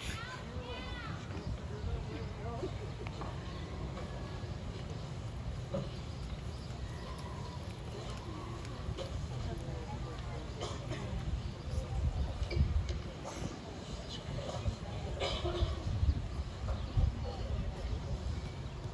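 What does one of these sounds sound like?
A choir of women and men sings together outdoors, heard from a distance.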